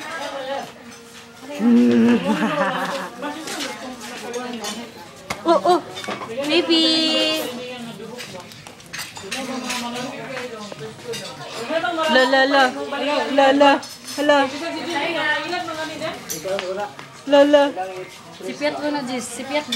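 A toddler babbles and squeals.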